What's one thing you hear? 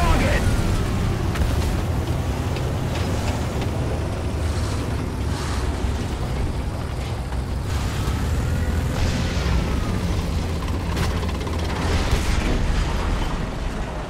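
A tank engine rumbles steadily as the tank drives over rocky ground.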